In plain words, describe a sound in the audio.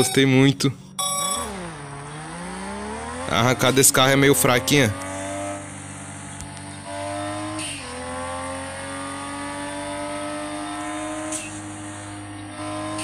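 A sports car engine accelerates through the gears.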